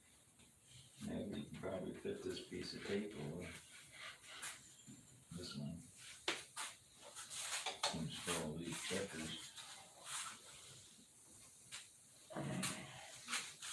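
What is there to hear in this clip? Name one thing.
A second older man answers in conversation close by.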